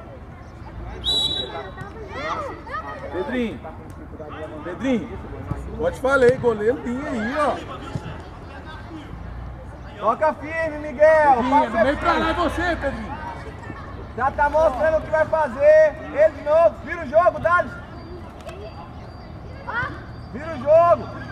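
Young children shout and call out to each other outdoors.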